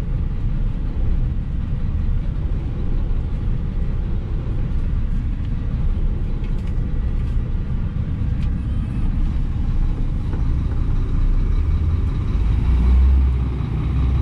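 Paper money rustles in a driver's hands.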